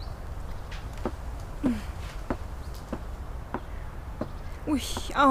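Footsteps tap across a hard floor at an even pace.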